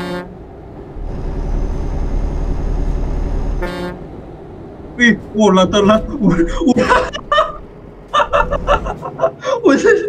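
A diesel truck engine rumbles in a video game.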